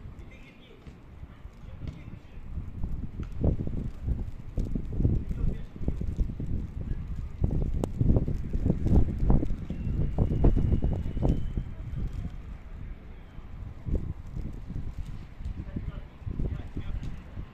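Wind gusts outdoors and buffets the microphone with low rumbles.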